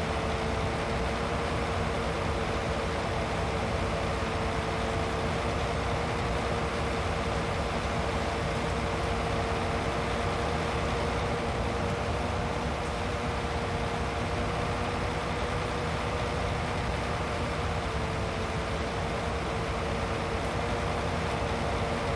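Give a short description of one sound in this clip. A mower clatters as it cuts grass.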